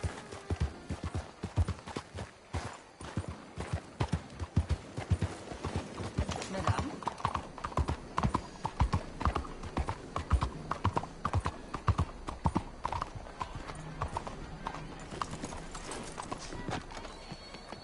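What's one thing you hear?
Horse hooves clop on cobblestones at a quick pace.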